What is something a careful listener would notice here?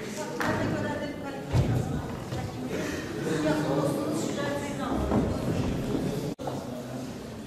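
A middle-aged woman speaks steadily.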